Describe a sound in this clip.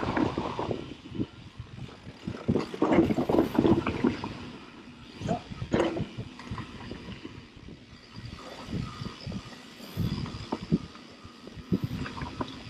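A bicycle rattles and clanks over bumps on the trail.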